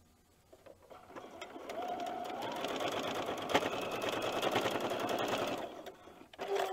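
A sewing machine runs steadily, stitching.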